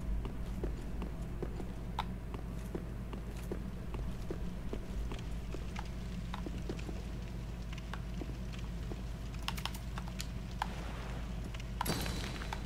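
Heavy armoured footsteps thud quickly on stone.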